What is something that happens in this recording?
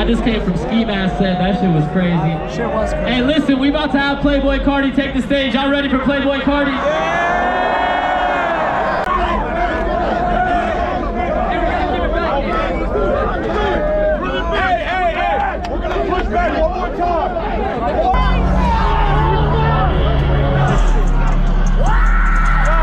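Loud music with singing plays through big speakers outdoors.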